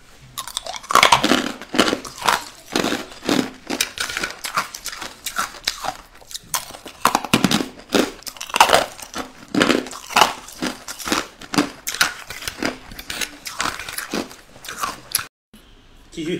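A young woman crunches hard ice loudly, close to the microphone.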